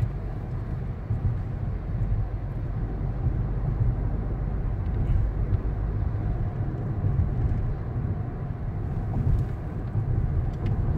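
Tyres roll on the road surface with a low rumble.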